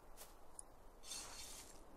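A trowel scrapes into soil.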